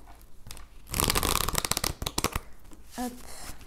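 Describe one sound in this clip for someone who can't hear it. Cards shuffle with a quick riffling rustle.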